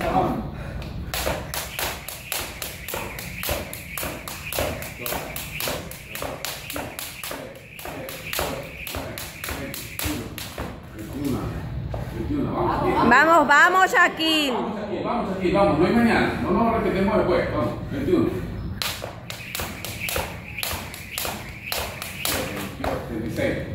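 A jump rope whips and slaps the floor in a quick, steady rhythm.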